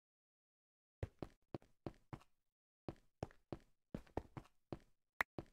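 Footsteps tap on stone at a steady pace.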